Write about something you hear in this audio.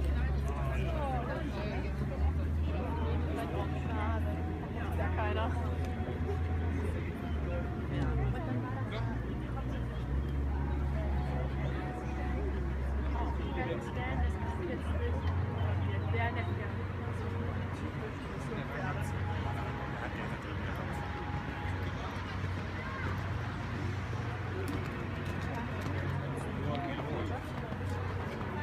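Spectators chatter in a murmuring crowd outdoors.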